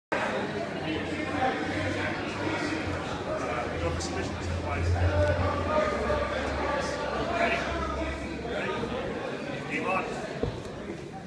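A woman speaks calmly, explaining, in a large echoing room.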